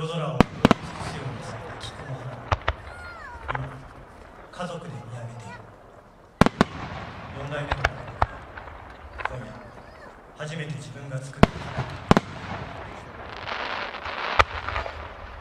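Fireworks burst with loud sharp bangs, outdoors.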